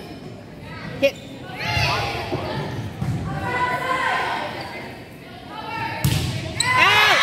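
A volleyball thuds off players' arms and hands.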